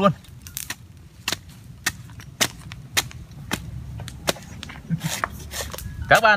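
A machete chops sharply into a coconut husk, again and again.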